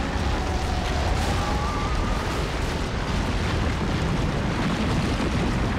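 A deep rumbling roar of explosions and crashing debris goes on throughout.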